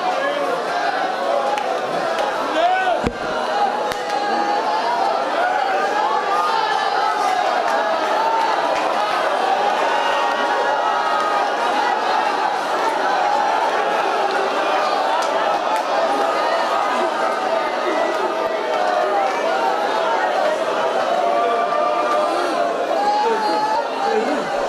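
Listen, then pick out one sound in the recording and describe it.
A large crowd of men and women pray aloud together, many voices overlapping in a big echoing hall.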